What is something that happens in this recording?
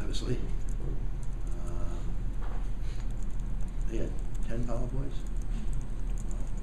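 An elderly man reads aloud calmly into a microphone.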